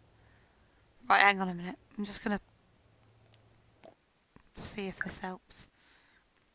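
A young woman talks through a headset microphone.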